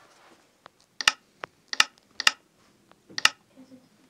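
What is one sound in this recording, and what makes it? Menu buttons click sharply a few times.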